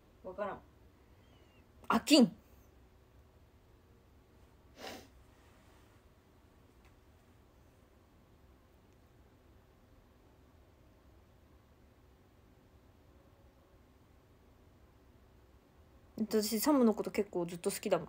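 A young woman speaks briefly and softly close to a microphone, then talks with animation.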